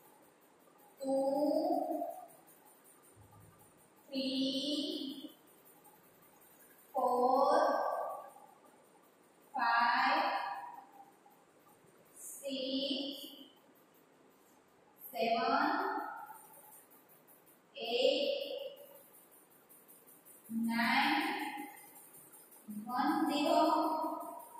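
A woman calls out numbers one at a time, loud and clear, with pauses between them.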